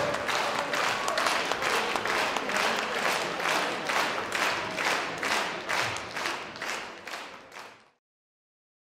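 An audience claps in a steady rhythm.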